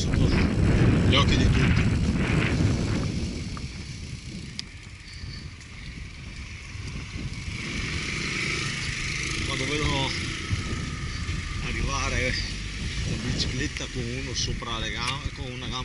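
Wind buffets loudly outdoors, then eases.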